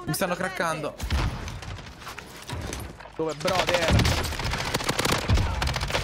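Gunshots crack rapidly from a game.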